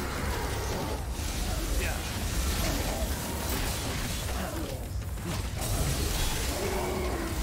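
Swords clash and slash in a loud game fight.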